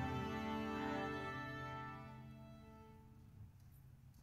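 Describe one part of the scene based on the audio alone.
A symphony orchestra's final chord rings out and fades in a large hall.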